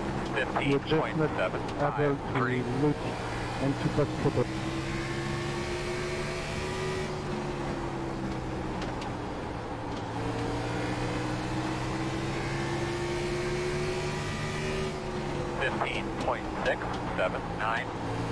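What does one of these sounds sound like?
A race car engine drones steadily, rising and falling in pitch.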